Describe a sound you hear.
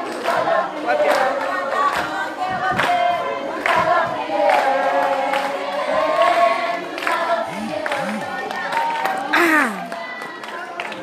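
A crowd of people sings together outdoors.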